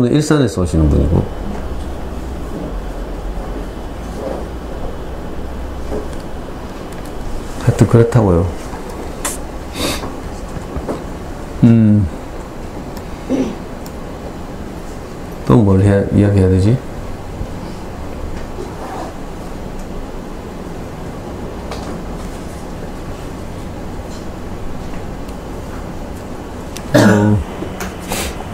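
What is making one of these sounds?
A middle-aged man speaks calmly into a headset microphone, in short bursts with long pauses.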